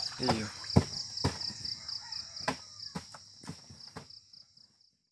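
Plastic crates knock and thud as they are stacked.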